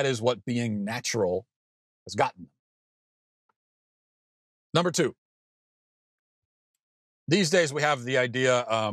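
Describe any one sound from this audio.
A man talks with animation into a close microphone, with pauses.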